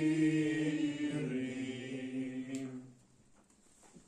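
A man chants a recitation in a long, melodic voice.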